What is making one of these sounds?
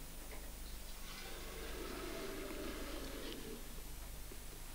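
A man with a low voice speaks quietly, close by.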